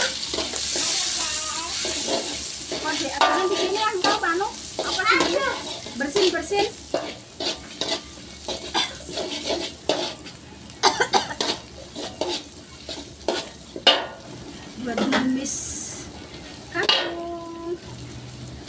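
A metal spatula scrapes and clatters against a pan.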